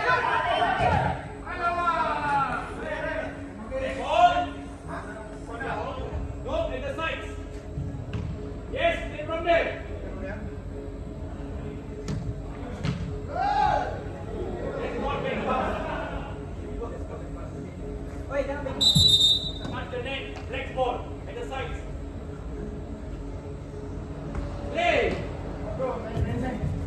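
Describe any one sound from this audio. Men shout and call out to each other in an echoing indoor hall.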